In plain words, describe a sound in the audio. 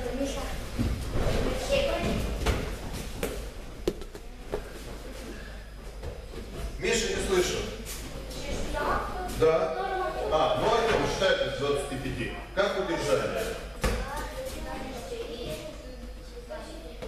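A man gives instructions in a loud voice in an echoing hall.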